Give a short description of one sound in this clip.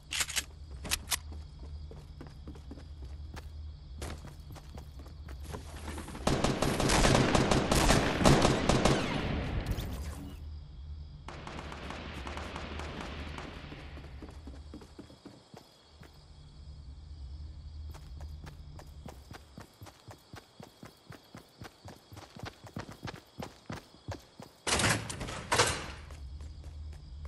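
Quick footsteps thud across a wooden floor.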